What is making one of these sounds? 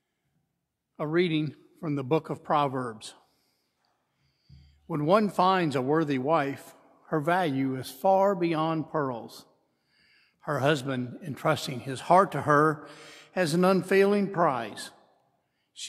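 A man sings slowly through a microphone in a large echoing hall.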